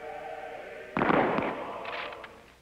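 A volley of rifles fires outdoors.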